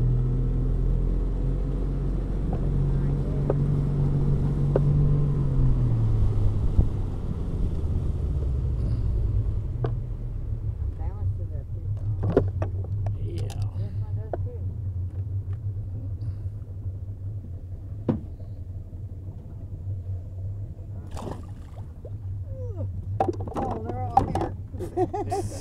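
A boat motor hums steadily nearby, dropping lower after a few seconds.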